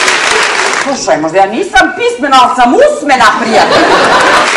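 A woman speaks with animation into a microphone in a large hall.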